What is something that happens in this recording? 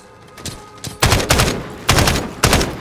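A rifle fires loud rapid bursts close by.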